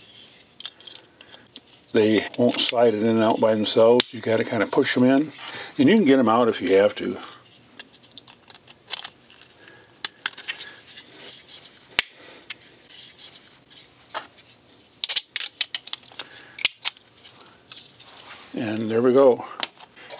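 Plastic parts click and snap as they are fitted together by hand.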